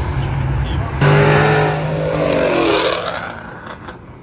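A sports car's engine roars loudly as it speeds past.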